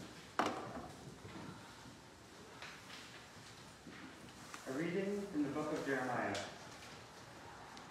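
A man reads aloud calmly in a large echoing hall.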